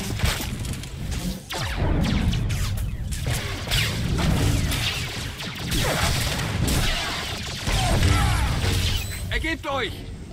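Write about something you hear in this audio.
Blaster shots zap and crackle in quick bursts.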